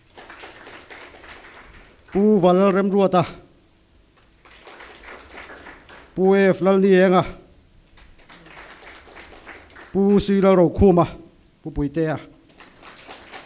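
A man speaks with animation into a microphone over loudspeakers in an echoing hall.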